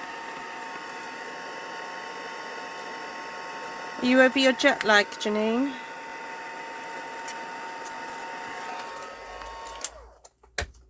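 A heat gun blows with a steady whirring hum.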